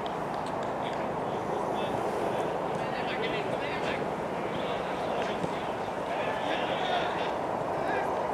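Young men call out to each other across an open field.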